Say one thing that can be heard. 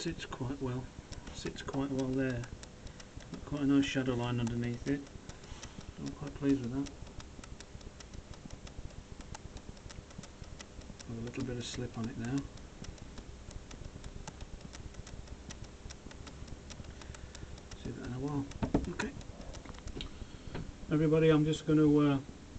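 A man talks calmly close by, in short phrases with pauses.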